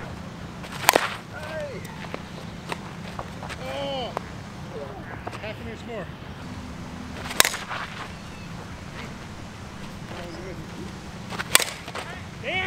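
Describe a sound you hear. A metal bat cracks sharply against a softball, several times.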